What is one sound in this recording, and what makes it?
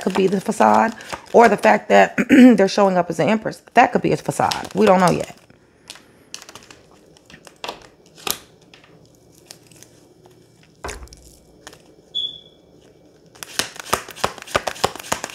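Playing cards shuffle and flutter in a woman's hands.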